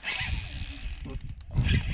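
A fishing reel whirs as it is cranked.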